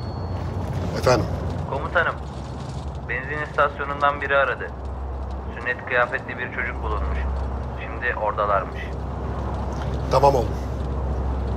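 A man talks on a phone in a calm, close voice.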